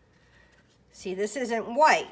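A brush softly spreads glue over paper.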